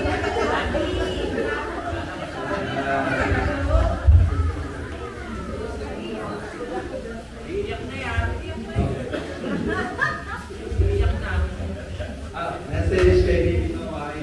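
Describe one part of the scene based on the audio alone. A man speaks into a microphone with animation, heard through loudspeakers in an echoing room.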